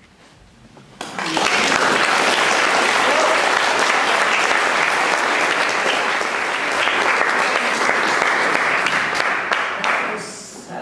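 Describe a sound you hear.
A woman claps her hands among loud applause.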